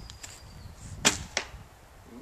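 A bowstring snaps as an arrow is released.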